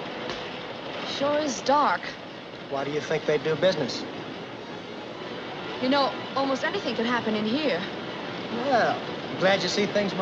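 A man talks and laughs close by.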